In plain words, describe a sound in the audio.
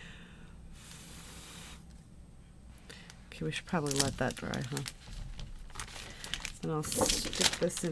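A plastic sheet rustles and crinkles.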